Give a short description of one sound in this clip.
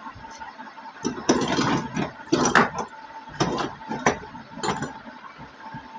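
A plastic iron housing knocks and clicks against a metal soleplate as it is fitted on.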